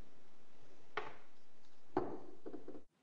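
A plastic juicer part knocks lightly against a hard surface.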